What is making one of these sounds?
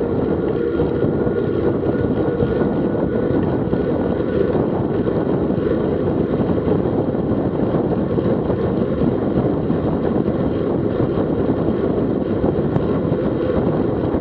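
Wind rushes loudly over the microphone throughout.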